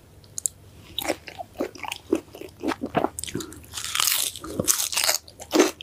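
A woman crunches loudly on fresh herbs close to a microphone.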